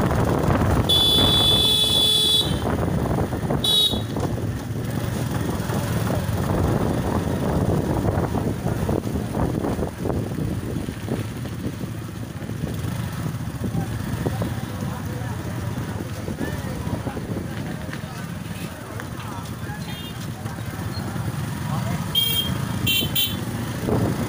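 Motorcycle horns honk in short bursts.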